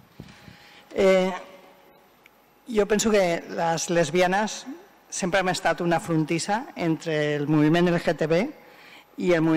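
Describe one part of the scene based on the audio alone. A middle-aged woman speaks with animation through a microphone in a large room.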